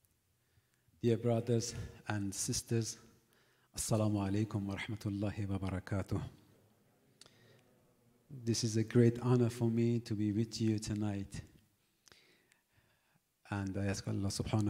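A man speaks calmly into a microphone, with pauses between phrases.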